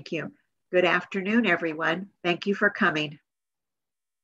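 An elderly woman speaks warmly and close, heard through an online call.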